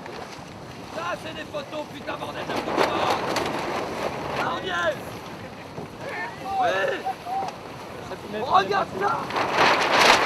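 A man shouts to a crew outdoors in wind.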